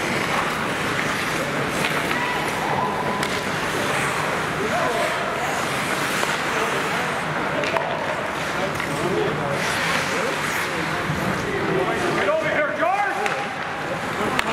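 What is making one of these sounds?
Skates scrape and swish across the ice.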